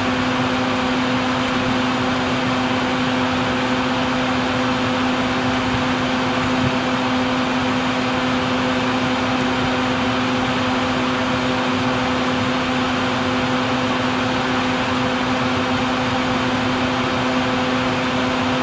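Hornets buzz steadily close by.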